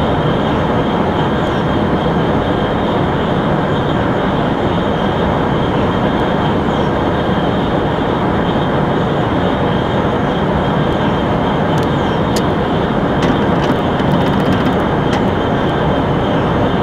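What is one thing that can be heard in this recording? A high-speed train rumbles steadily along the tracks.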